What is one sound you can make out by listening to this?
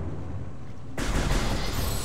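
A blaster fires a sharp energy shot.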